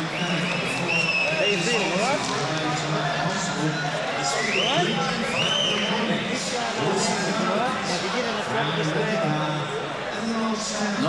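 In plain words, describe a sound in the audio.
An older man talks.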